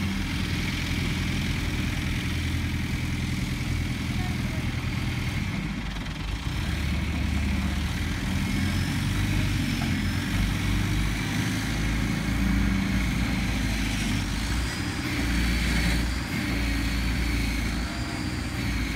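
A diesel engine rumbles steadily nearby.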